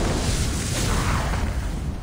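A large fiery explosion booms.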